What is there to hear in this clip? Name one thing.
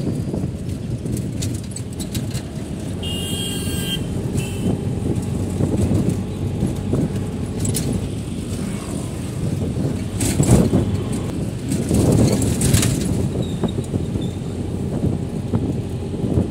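A vehicle's engine rumbles steadily as it drives along a road.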